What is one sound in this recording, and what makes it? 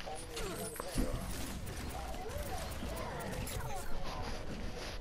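A futuristic weapon fires in rapid bursts.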